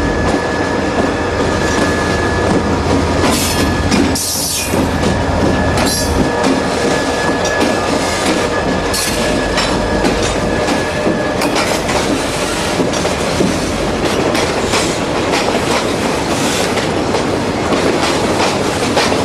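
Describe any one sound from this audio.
Freight cars clatter and squeal over the rails.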